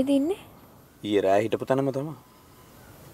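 A young man speaks sharply.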